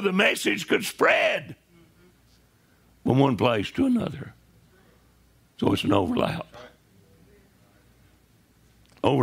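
An elderly man speaks with animation in short bursts, pausing between them.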